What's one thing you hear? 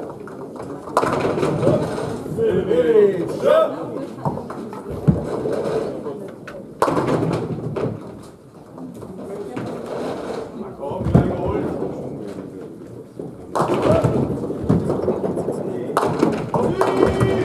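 Bowling pins clatter as they are knocked down.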